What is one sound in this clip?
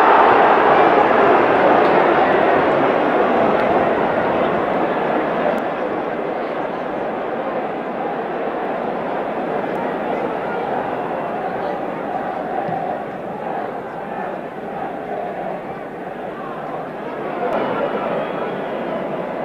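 A large stadium crowd roars loudly, then slowly quietens.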